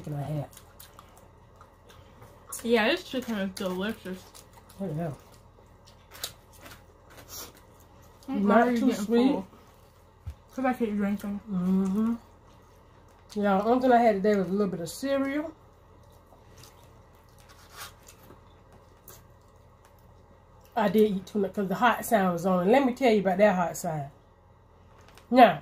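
Two women chew and slurp noodles close to a microphone.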